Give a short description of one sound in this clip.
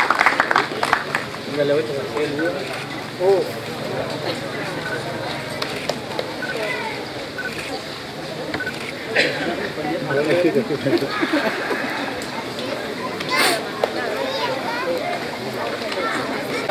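A man speaks over a loudspeaker outdoors.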